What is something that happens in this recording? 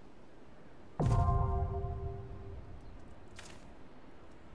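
A bright game chime rings out and fades.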